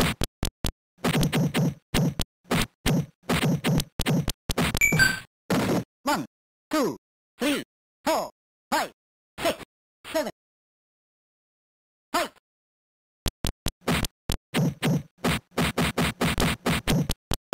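Retro video game punch effects thud in rapid bursts.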